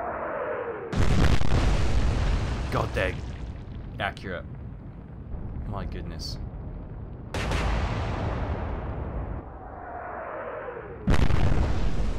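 Shells explode into the sea with heavy, crashing splashes.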